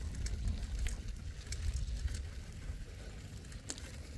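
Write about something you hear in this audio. Bicycle tyres crunch over sand.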